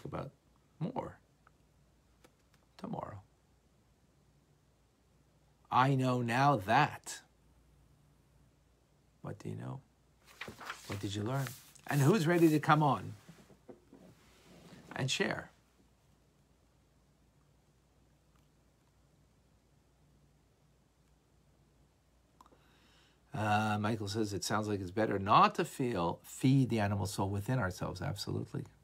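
A middle-aged man speaks calmly and close up, with pauses.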